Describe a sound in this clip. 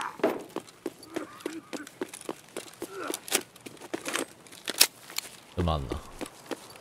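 Footsteps crunch rhythmically on gravel.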